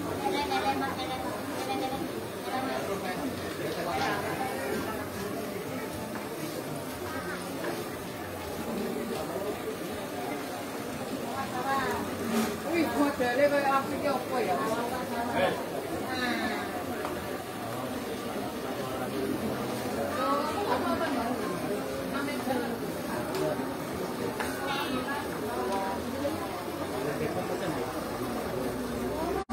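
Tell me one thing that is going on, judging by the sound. A crowd of men and women chatters around.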